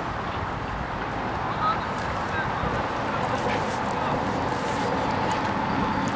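A small dog snuffles and rustles through grass.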